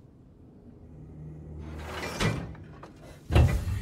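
A heavy metal lever clunks as it is pulled down.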